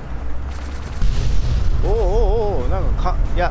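A loud explosion booms nearby.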